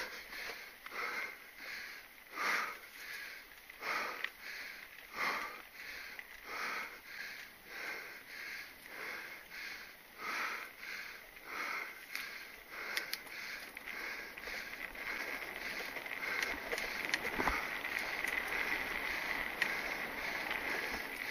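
Mountain bike tyres roll over a dirt trail and dry leaves.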